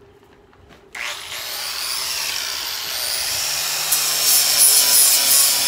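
An angle grinder whirs loudly, grinding wood with a harsh, high whine.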